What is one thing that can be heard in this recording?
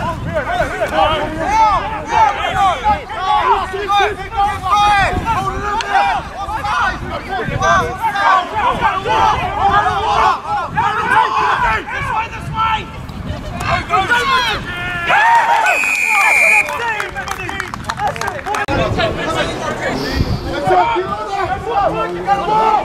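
Young men shout across an open field outdoors.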